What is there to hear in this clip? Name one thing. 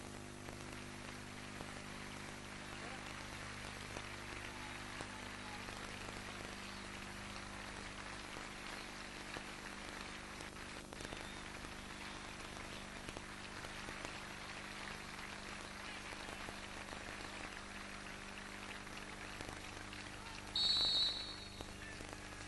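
A large crowd murmurs softly and quietly in a wide open space.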